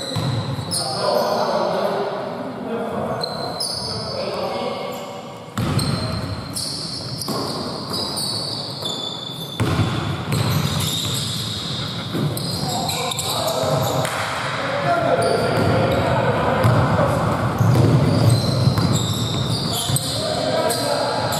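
Sneakers squeak on a wooden court in a large echoing gym.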